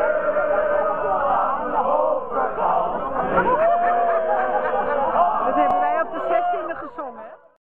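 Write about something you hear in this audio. A large crowd of older men and women sing together outdoors.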